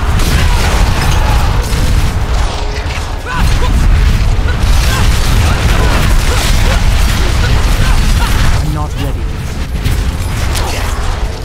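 Deep rumbling blasts boom throughout.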